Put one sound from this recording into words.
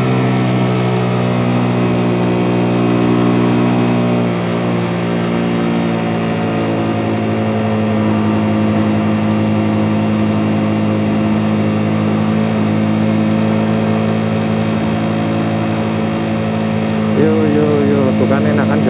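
A motorcycle engine hums steadily up close as the bike cruises.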